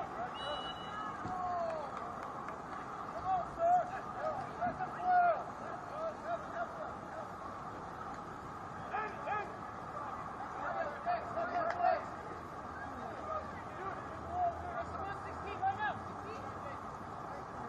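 Young men shout to each other across an open playing field.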